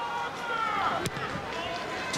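A rugby ball is kicked with a dull thump.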